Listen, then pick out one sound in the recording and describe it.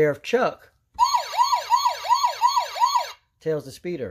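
A toy siren wails with a warbling electronic tone through a small loudspeaker.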